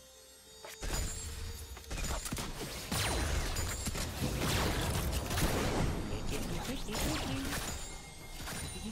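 Spell effects whoosh and burst in a fast game fight.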